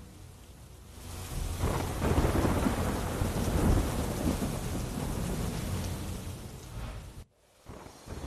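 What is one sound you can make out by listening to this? Heavy rain pours down steadily.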